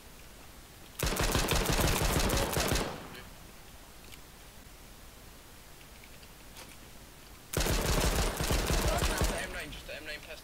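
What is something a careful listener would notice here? Pistol shots ring out in rapid bursts.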